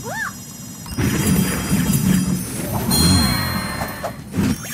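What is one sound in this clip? A cheerful game fanfare plays with sparkling chimes.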